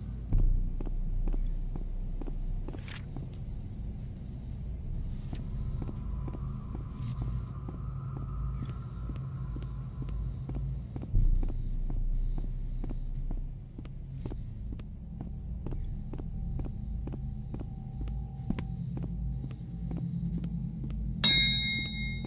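Footsteps tap steadily along a hard floor.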